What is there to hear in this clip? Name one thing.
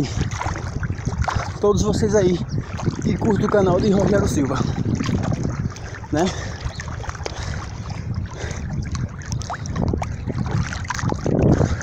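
Water splashes and laps around a swimmer.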